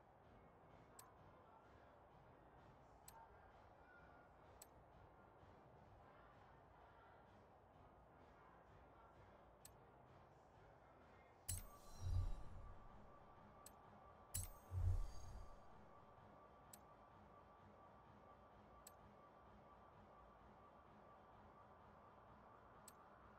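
Short soft clicks tick now and then as menu choices change.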